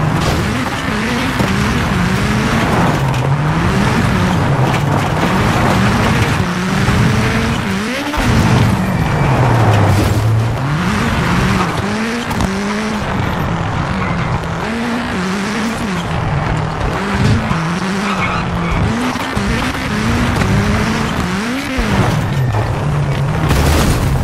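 Tyres crunch and skid over gravel.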